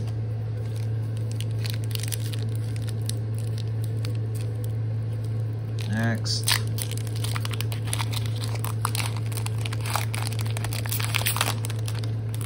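A foil wrapper crinkles and tears as it is opened by hand.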